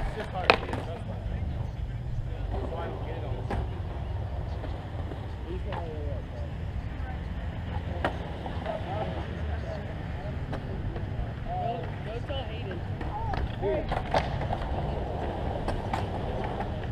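Skateboards clack and roll on concrete.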